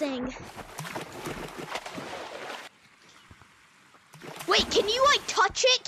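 Water splashes and sloshes.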